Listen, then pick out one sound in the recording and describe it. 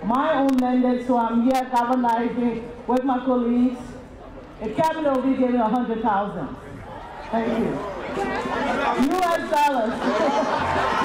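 A woman sings into a microphone, heard through loudspeakers outdoors.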